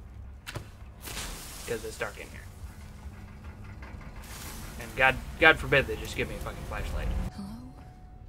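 A flare hisses and crackles as it burns.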